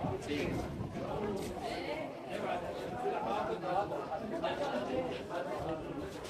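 A crowd of men and women chatter nearby and in the distance.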